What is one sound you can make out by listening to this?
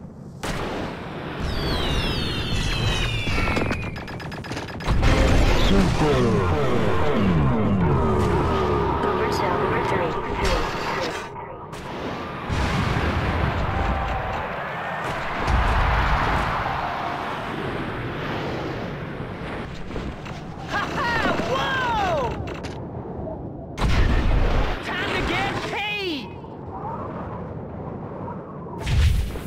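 A snowboard carves and hisses over snow.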